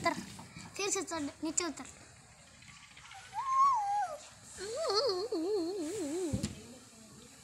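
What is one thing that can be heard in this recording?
A small child babbles and squeals in a high voice nearby.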